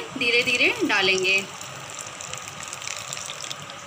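Liquid pours in a thin stream into a pan of batter.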